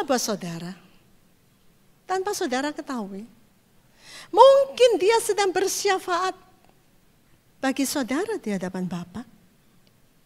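A middle-aged woman speaks with animation into a microphone, in bursts with pauses.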